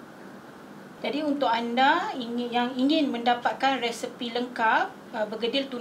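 A woman speaks clearly and warmly, close to a microphone.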